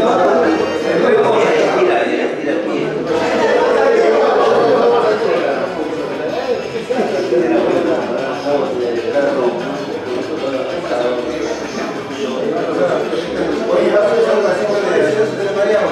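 Several men talk with animation nearby, their voices overlapping.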